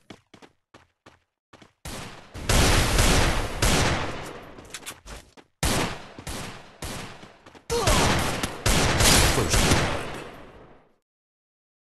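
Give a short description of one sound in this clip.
Gunshots fire rapidly in a video game.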